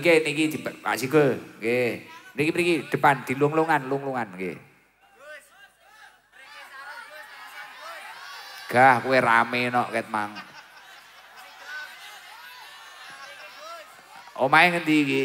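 A young man speaks with animation through a microphone and loudspeakers.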